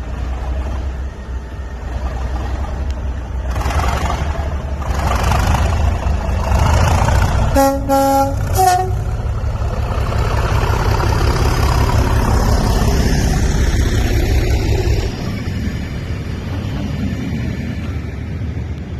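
A diesel locomotive rumbles and roars as it approaches and passes close by.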